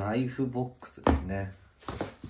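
A cardboard box is set down with a soft thump.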